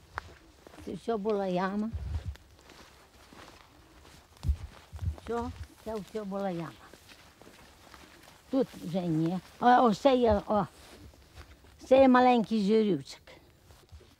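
An elderly woman speaks with animation outdoors, close by.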